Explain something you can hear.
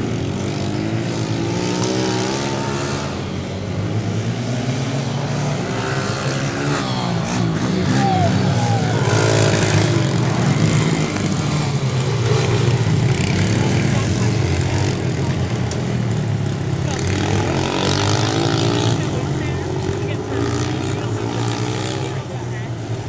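Small dirt bike engines buzz and rev up and down.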